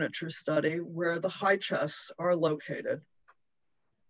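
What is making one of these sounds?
An elderly man speaks calmly through an online call microphone.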